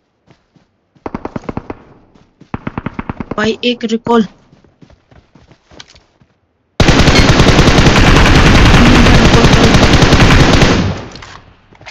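A rifle fires in rapid, loud bursts close by.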